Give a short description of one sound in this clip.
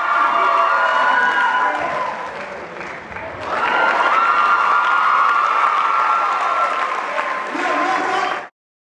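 Loud music plays through loudspeakers in a large hall.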